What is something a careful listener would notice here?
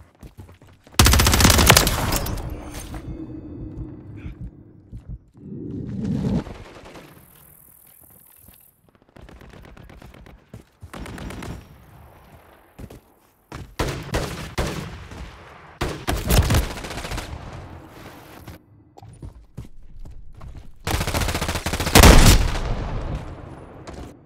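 Loud rifle shots ring out and echo away.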